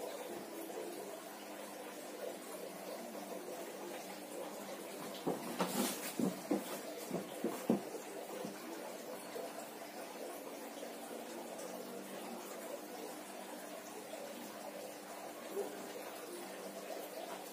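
A coin scrapes across bare skin.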